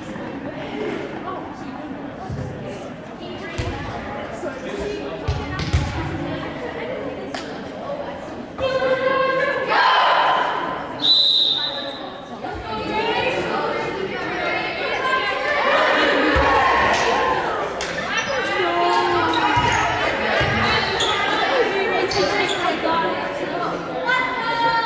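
Young women chatter and cheer loudly in a large echoing gym.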